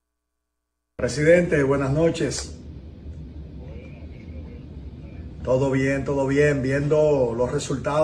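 A man talks on a phone close by.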